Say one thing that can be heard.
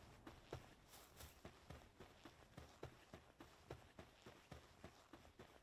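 Footsteps thud quickly on soft sand.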